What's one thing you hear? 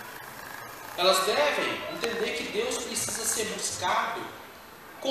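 A middle-aged man speaks with animation into a microphone, heard through loudspeakers in an echoing hall.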